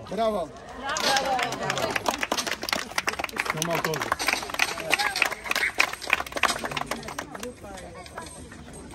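A group of people applaud.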